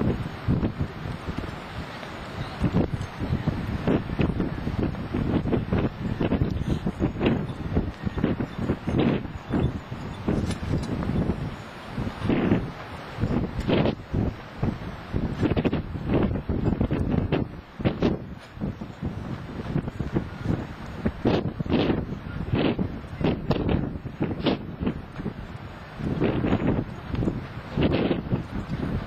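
A small steam train chuffs steadily as it passes close by.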